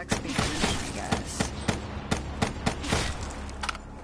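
Rapid gunshots fire in a steady rhythm.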